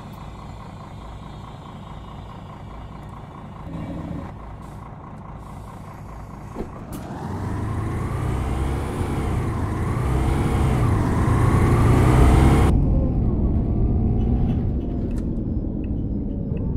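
A bus engine idles low, then revs up and rumbles as the bus pulls away.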